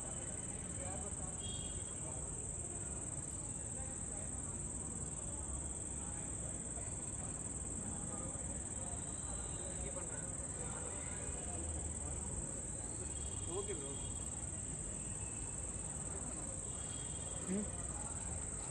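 Men shout to each other in the distance, outdoors.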